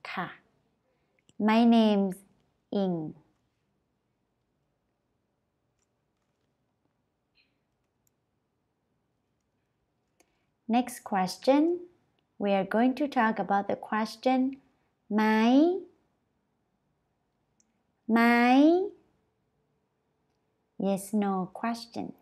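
A young woman speaks clearly and slowly into a close microphone, pausing between phrases.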